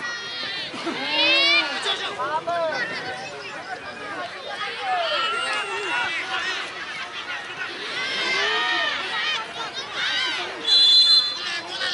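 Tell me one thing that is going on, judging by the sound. A crowd of spectators shouts and cheers outdoors throughout.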